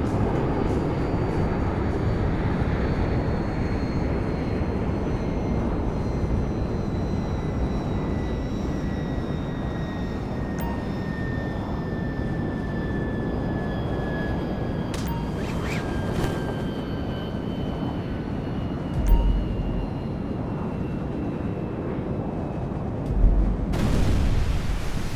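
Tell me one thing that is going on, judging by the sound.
Wind roars loudly and steadily past a falling skydiver.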